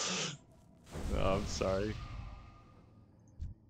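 A magic spell whooshes and shimmers.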